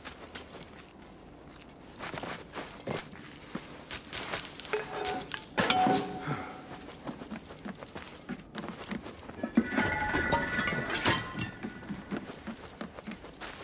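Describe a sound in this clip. Footsteps tread on dirt ground.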